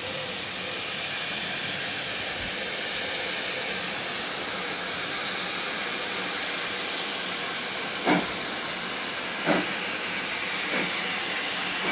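Steam hisses loudly and steadily from a locomotive.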